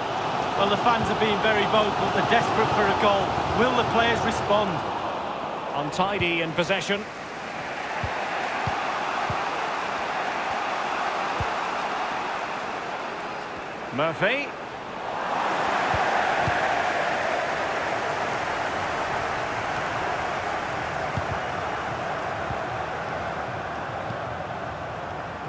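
A large stadium crowd cheers and murmurs steadily, swelling at times.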